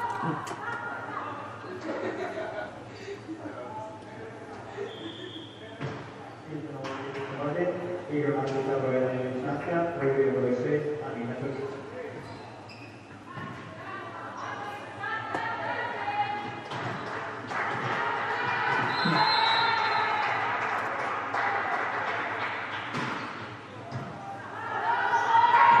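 Young women shout and call out across the court.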